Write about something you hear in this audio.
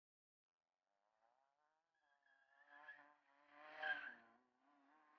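A car engine revs hard and whines.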